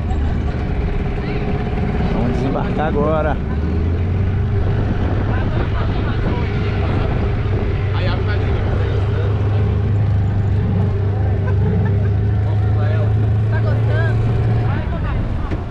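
A boat engine hums steadily and then cuts out.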